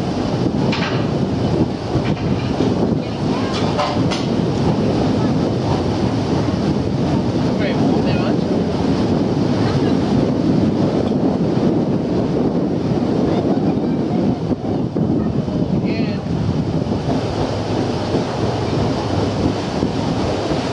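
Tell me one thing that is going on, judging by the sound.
Water splashes against a moving boat.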